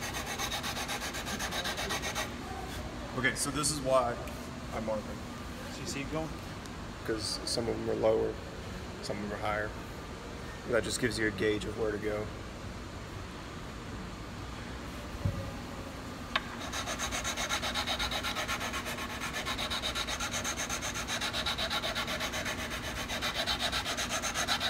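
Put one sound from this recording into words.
A metal file rasps back and forth in quick, steady strokes.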